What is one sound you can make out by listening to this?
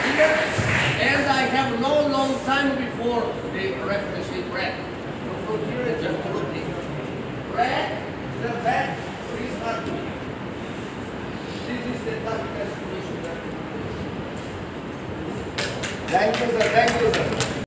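A man talks calmly in an echoing hall.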